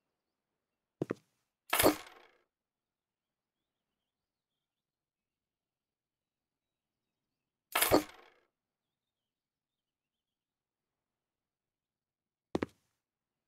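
Short electronic interface sounds whoosh and click now and then.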